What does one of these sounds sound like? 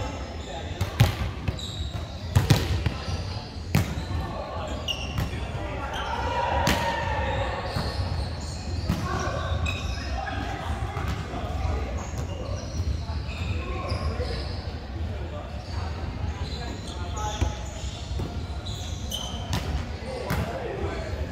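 A volleyball is hit with sharp smacks in a large echoing hall.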